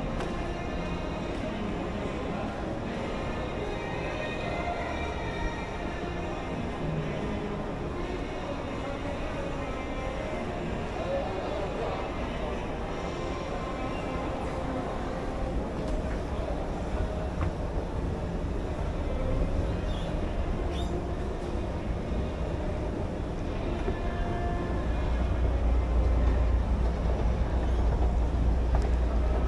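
Distant voices murmur in a large echoing hall.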